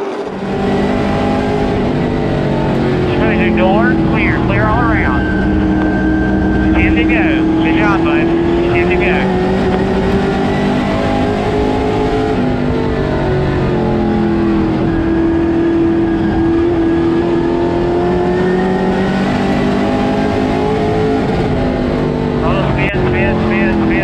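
The car's body rattles and vibrates over the track.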